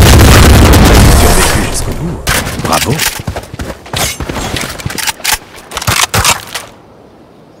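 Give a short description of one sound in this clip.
Gunshots fire in rapid bursts.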